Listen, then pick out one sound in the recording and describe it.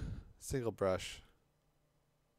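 A young man speaks briefly and closely into a microphone.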